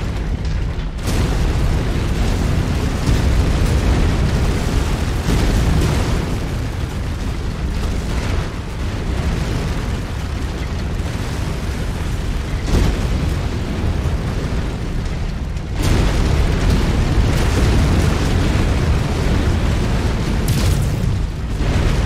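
Heavy gunfire and explosions rumble and boom throughout.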